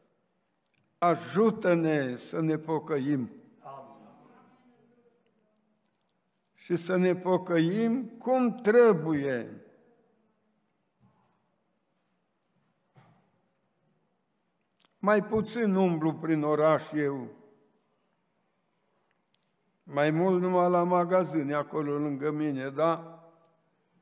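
An elderly man speaks slowly and earnestly into a microphone, in bursts with long pauses.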